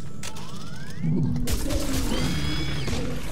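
A heavy gun fires with a loud, booming blast.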